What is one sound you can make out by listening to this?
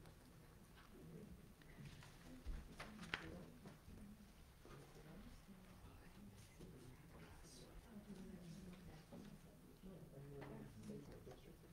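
A group of women and men read aloud together into a microphone.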